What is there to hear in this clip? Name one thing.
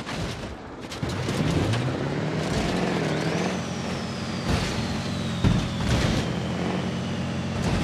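A truck engine roars and strains.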